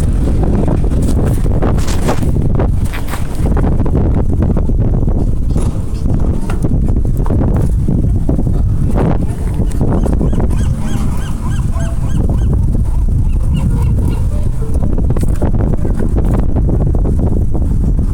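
Strong wind buffets and roars outdoors.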